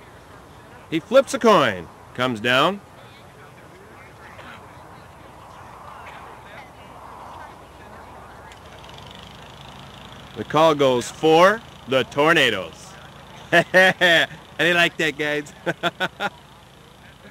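A man speaks in short bursts close by, outdoors.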